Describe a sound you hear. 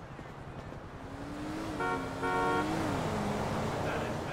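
A car engine hums as a car drives past.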